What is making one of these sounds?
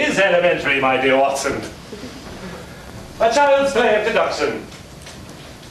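A man speaks loudly, in a room with some echo.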